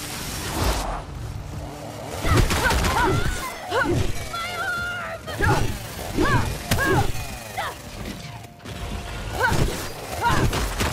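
A large beast snarls and roars close by.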